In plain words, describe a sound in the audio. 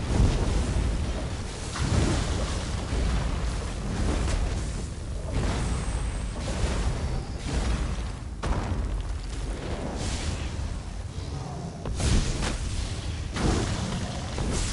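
Loud booming impacts strike again and again in a game fight.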